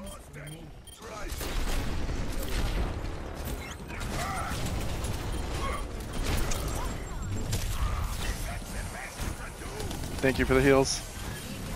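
Gunfire and explosions from a video game crackle and boom.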